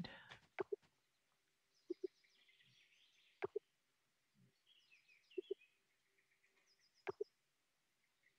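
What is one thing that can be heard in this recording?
Short soft interface blips sound in pairs every second or two.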